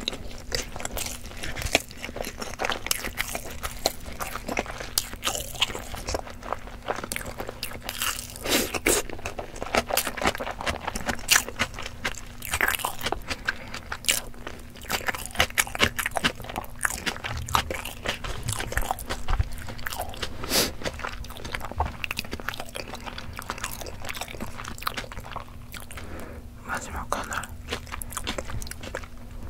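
A young woman makes wet mouth clicks close to a microphone.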